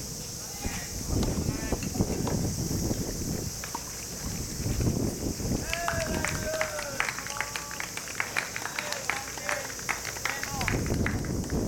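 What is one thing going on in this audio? Tennis balls are hit with faint pops far off.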